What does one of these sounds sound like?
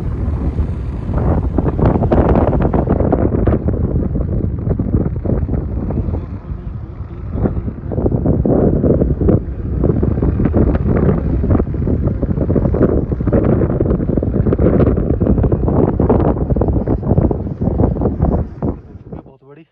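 Tyres rumble and rattle over a rough dirt road.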